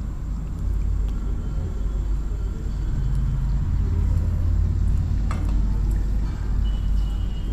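Hands rustle and mix dry breadcrumbs in a metal bowl.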